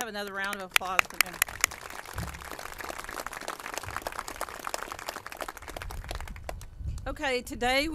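A small crowd applauds.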